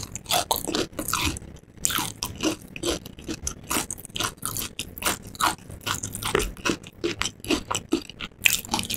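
A woman chews crunchy food loudly, very close to a microphone.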